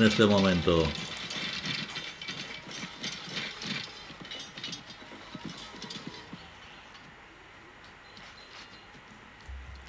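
Swords clash and soldiers fight in a distant battle.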